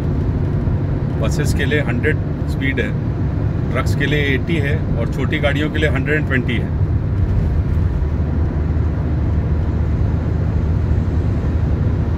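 A car's engine and tyres rumble steadily on a highway.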